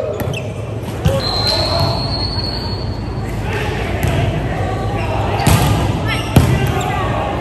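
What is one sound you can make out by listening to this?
A volleyball is struck with sharp slaps in an echoing hall.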